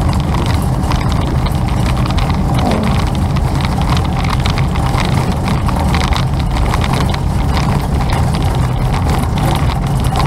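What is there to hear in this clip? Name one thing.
Wind roars loudly against a moving bicycle.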